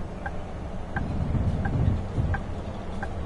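A bus engine revs up briefly.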